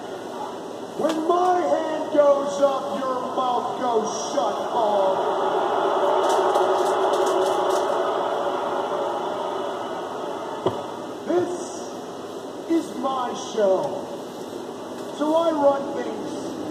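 A middle-aged man talks casually nearby.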